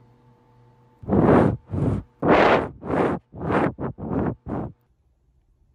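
A small animal screams loudly in short, repeated bursts close by.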